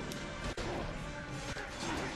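Weapons clash and strike in a battle.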